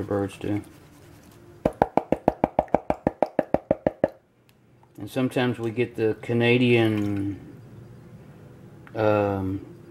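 Water swishes gently in a shallow pan.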